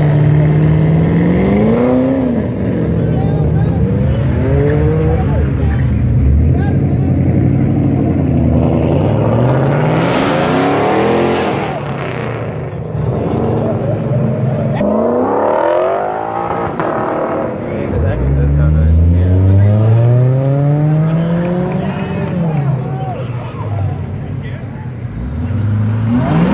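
Loud sports car engines rev and roar as cars drive past one after another, outdoors.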